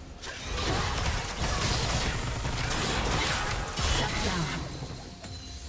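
Game spell effects whoosh and crackle loudly.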